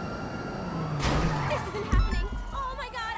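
A car crashes with a loud bang and crunch of metal.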